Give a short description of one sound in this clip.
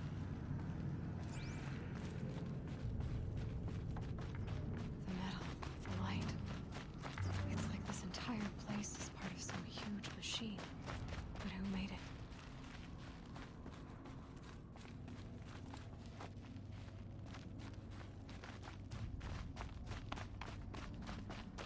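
Footsteps tread steadily.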